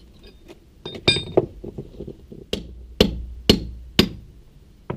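A trowel taps and scrapes on bricks.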